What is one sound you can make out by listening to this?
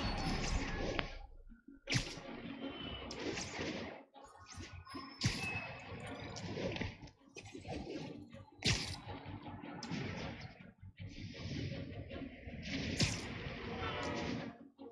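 Wind rushes past in loud swells.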